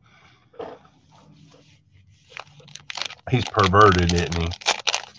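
A plastic card pack crinkles as hands handle it.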